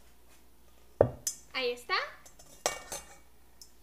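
A metal whisk clinks against a metal bowl.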